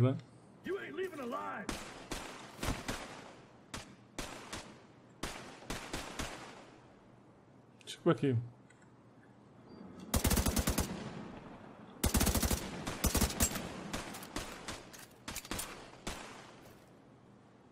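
Rapid gunshots fire in bursts and echo.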